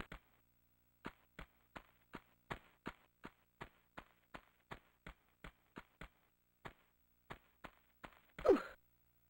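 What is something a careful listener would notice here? Quick footsteps patter on stone.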